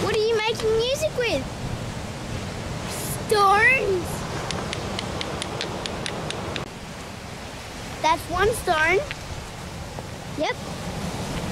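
A young boy talks excitedly close by, his voice high and lively.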